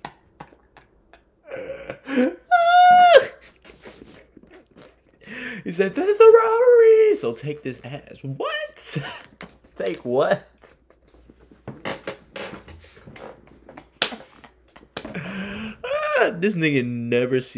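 A young man laughs loudly.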